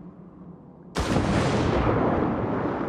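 A body splashes into water.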